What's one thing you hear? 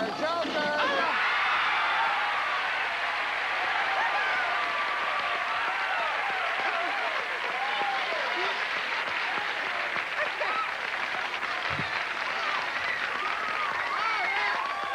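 A studio audience claps loudly.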